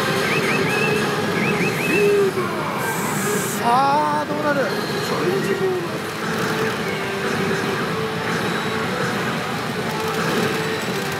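Steel balls rattle through a pachinko machine.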